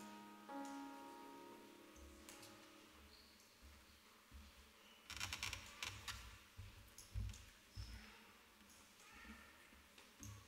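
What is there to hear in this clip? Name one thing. A crowd of men and women chat quietly in a large echoing hall.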